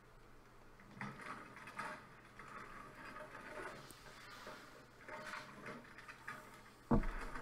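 Papers and objects rustle as someone rummages through a cabinet drawer.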